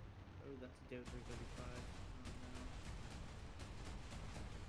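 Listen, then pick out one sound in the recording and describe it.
An anti-aircraft gun fires rapid bursts of shots.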